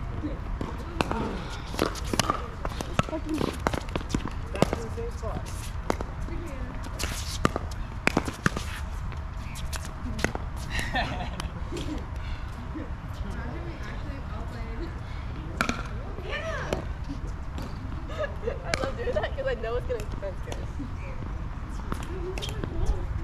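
Paddles strike a plastic ball back and forth with sharp hollow pops.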